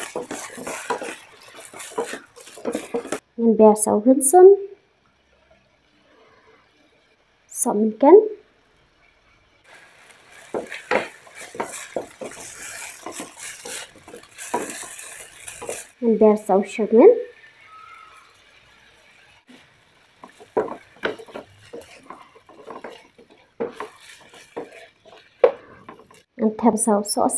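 A wooden spatula scrapes and knocks against a pan.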